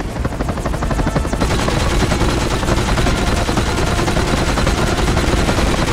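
A helicopter's rotor thumps rapidly nearby.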